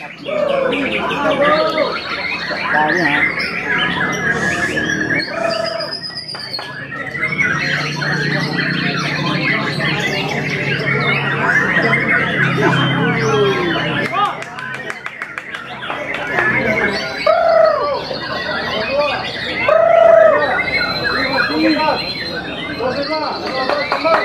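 A bird flutters its wings and hops about inside a wire cage.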